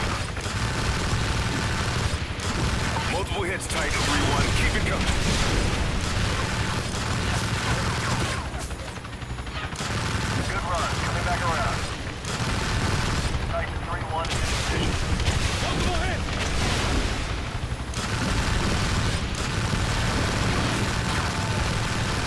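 Missiles launch and whoosh away.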